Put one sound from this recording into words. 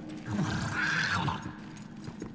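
A blade slashes into flesh with a wet thud.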